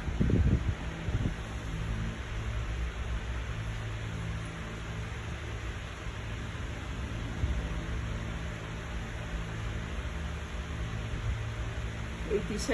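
A printer hums and whirs steadily.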